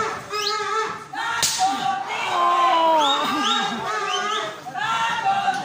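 A crowd shouts and cheers loudly in a large echoing hall.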